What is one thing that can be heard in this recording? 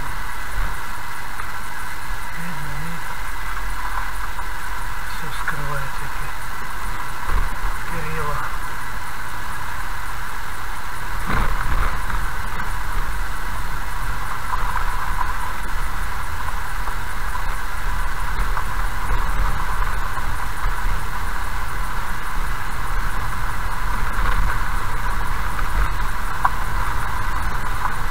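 A car engine hums steadily as the car drives slowly.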